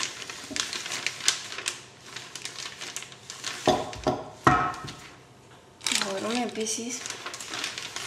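Plastic wrap crinkles and rustles under hands.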